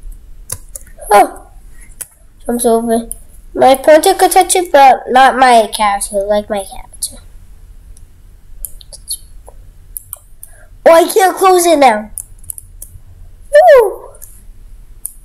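A young boy talks with animation close to a microphone, in short bursts.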